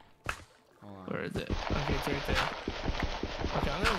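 Blocks of dirt crunch as they are dug out.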